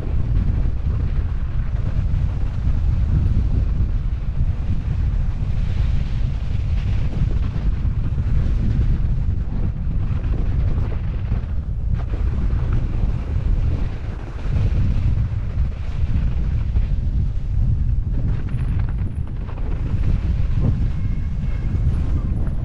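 Mountain bike tyres rumble and crunch over snow and grass.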